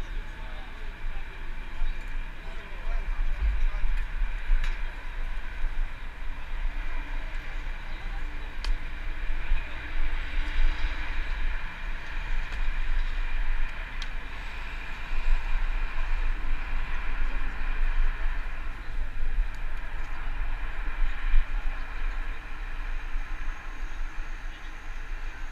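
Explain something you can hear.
Wind rumbles steadily against a microphone outdoors.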